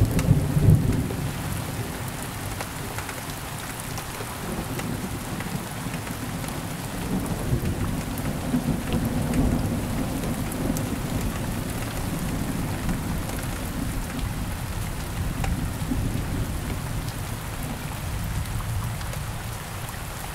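Thunder rumbles and rolls, swelling and fading in waves.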